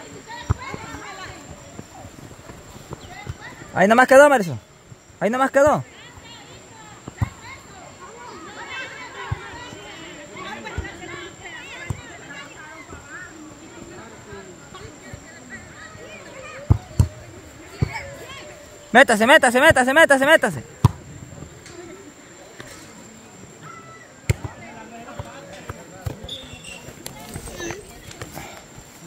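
Young women call out and chatter in the distance.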